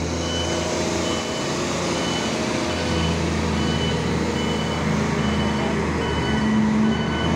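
A heavy diesel engine rumbles and strains steadily.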